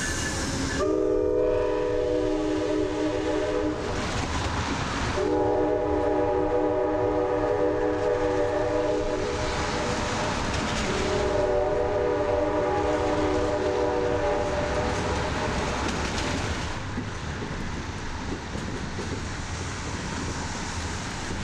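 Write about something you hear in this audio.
A train rumbles slowly along the tracks.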